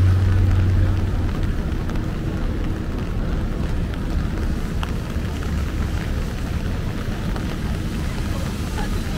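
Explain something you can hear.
Footsteps splash on a wet pavement.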